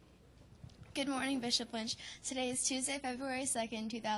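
A young woman speaks clearly into a microphone, like a news presenter.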